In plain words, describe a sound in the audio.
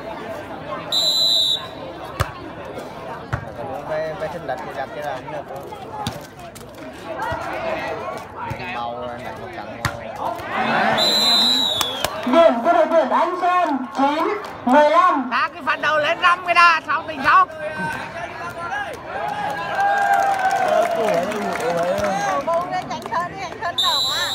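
A referee's whistle blows in short blasts.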